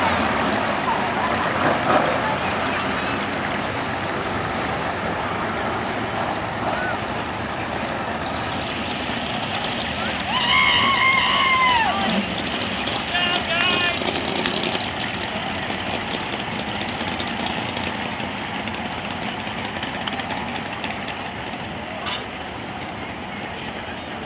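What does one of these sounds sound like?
Race car engines roar around an outdoor track.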